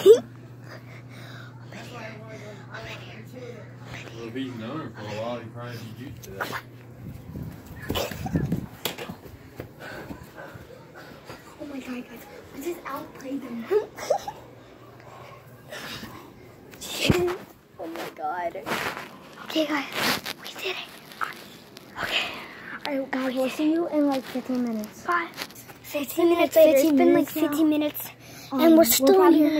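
A young boy talks and laughs close to a phone microphone.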